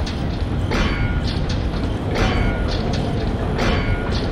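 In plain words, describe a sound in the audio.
Heavy footsteps clang on a metal walkway, echoing in a large space.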